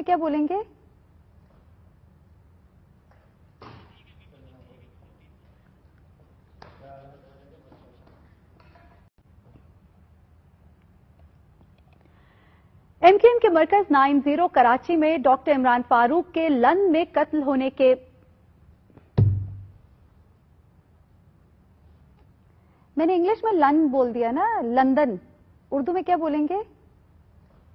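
A young woman speaks calmly and clearly into a microphone, reading out.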